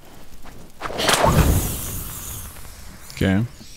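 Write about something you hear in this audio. A fire flares up with a sudden whoosh.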